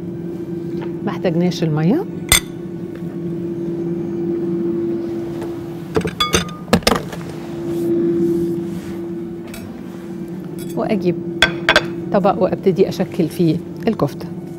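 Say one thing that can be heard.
A middle-aged woman speaks calmly close to a microphone.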